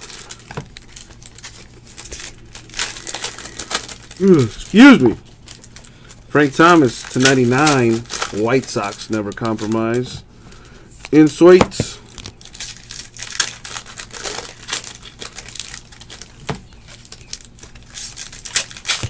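A plastic card wrapper crinkles and rustles close by.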